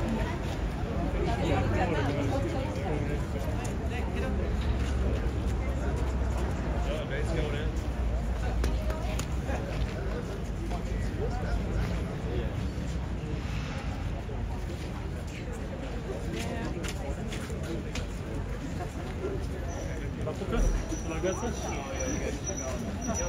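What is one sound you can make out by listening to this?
A crowd of adults and children chatters nearby outdoors.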